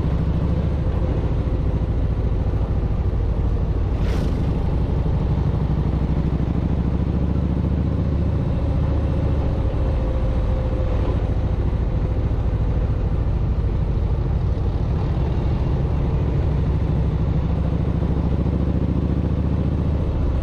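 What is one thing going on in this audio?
Wind buffets past at speed.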